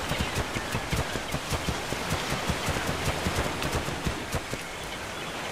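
Heavy paws thud quickly on sand.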